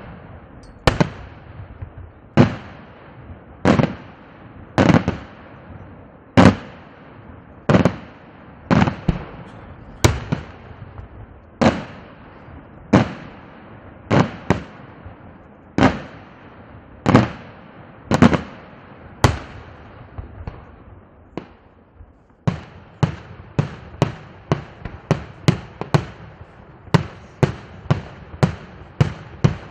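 Fireworks bang loudly overhead, one after another, with a short echo after each blast.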